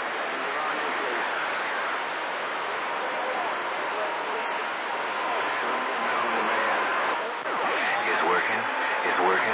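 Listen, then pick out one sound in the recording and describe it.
A radio receiver hisses with loud, steady static.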